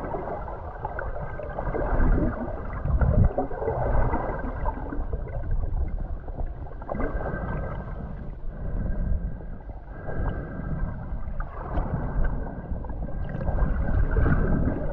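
Water rushes and bubbles around an underwater microphone, muffled and close.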